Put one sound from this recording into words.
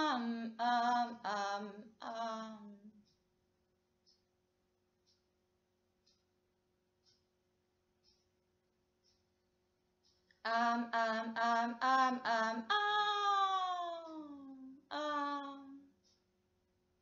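A young woman sings a short melody close to the microphone.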